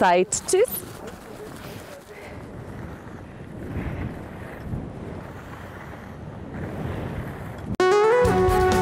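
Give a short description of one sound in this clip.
Skis scrape and hiss over snow outdoors.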